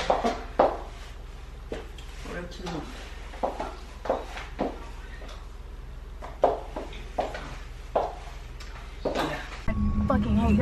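Footsteps tap sharply on a hard floor indoors.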